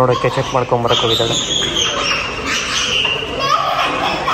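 A young child squeals and calls out.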